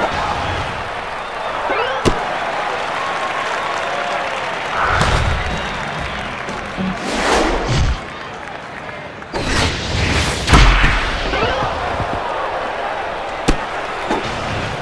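A crowd murmurs and cheers in a large stadium.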